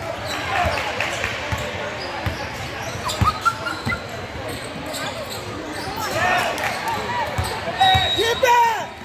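A basketball bounces on a hard court with a booming echo in a large hall.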